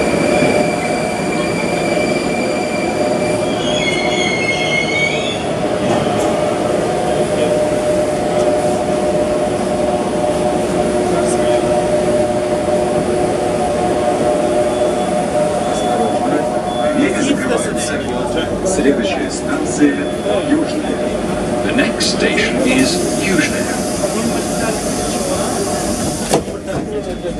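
A subway train's motor hums steadily.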